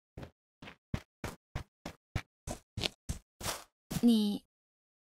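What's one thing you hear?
Quick footsteps run over stone and grass.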